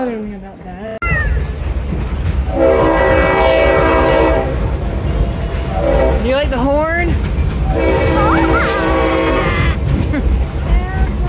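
A train rumbles and clatters steadily along the tracks.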